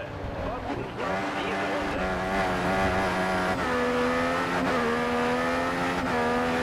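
A racing car engine revs up again while accelerating.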